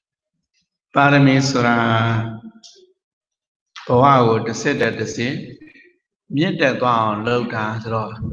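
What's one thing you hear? An elderly man speaks slowly and calmly into a microphone, in pauses.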